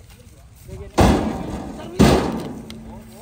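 Heavy logs thud down onto a truck bed.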